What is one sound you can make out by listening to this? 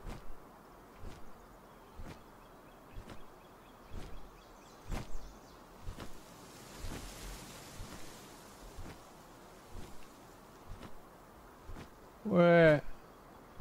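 Large wings beat steadily, about once a second.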